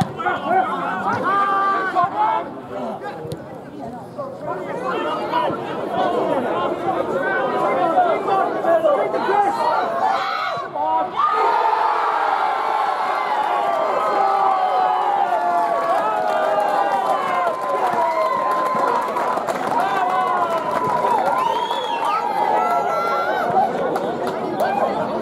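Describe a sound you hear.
Men shout and call to each other across an open pitch outdoors.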